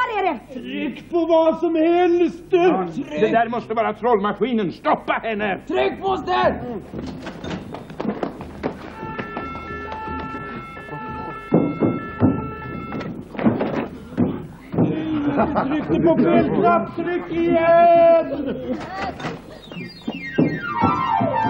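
A group of men and women sing loudly together.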